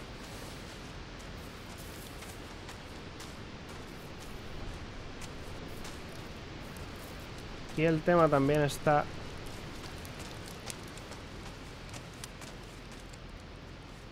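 Footsteps crunch softly over leaves and twigs.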